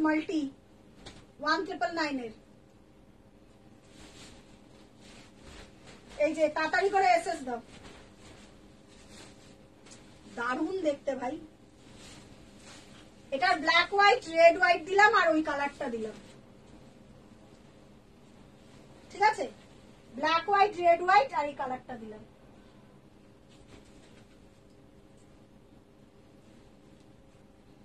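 Cloth rustles softly as a sari is unfolded.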